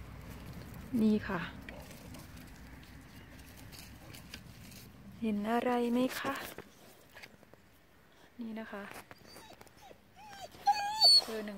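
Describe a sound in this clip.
A dog whines and yelps in short bursts.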